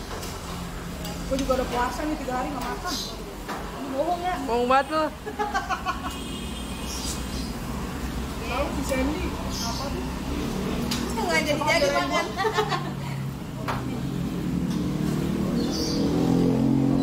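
Forks and spoons clink against plates.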